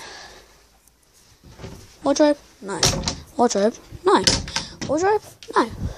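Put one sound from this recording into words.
A hand knocks on a wooden door.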